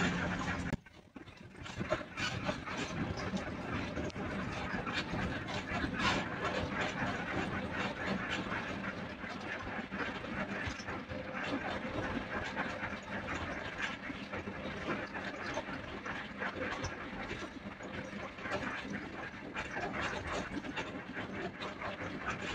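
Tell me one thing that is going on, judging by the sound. An engine hums inside the cabin of a moving vehicle.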